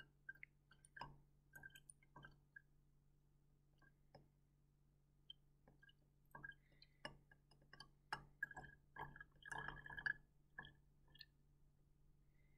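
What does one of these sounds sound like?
Small bubbles fizz and pop softly in liquid.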